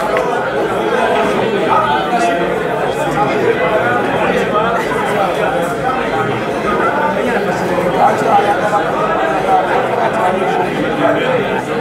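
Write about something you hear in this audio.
A crowd of men chatter loudly all around.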